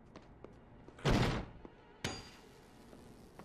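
A loud electric crackling burst erupts.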